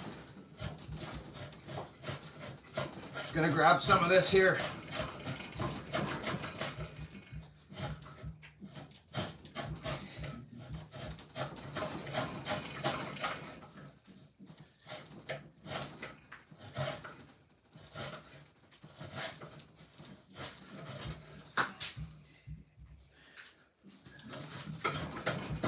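A hand tool scrapes and shaves wood in short, repeated strokes.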